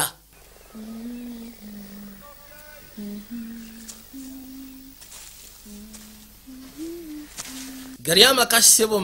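A young girl hums a slow tune softly.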